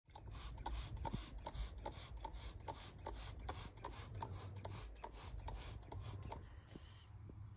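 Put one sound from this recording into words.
A spray bottle squirts in quick bursts.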